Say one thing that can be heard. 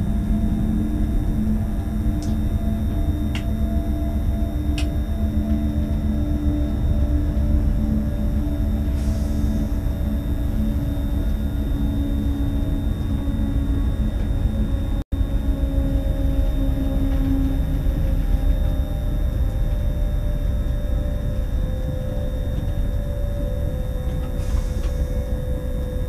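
A train rumbles steadily along the rails with a low hum.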